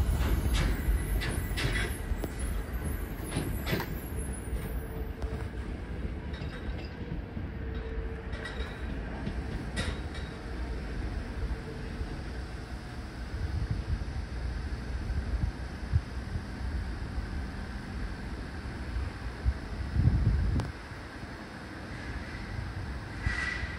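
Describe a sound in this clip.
A train rumbles away along the rails, slowly fading into the distance.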